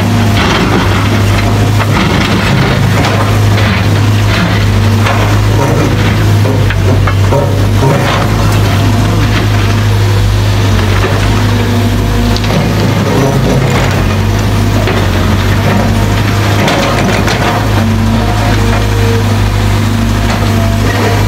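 A hydraulic breaker hammers rapidly on rock.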